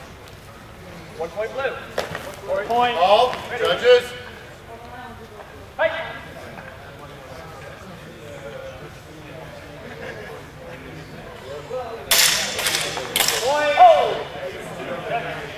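A man shouts a call.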